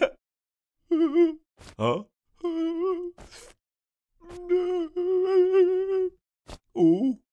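Bear cubs whimper and cry.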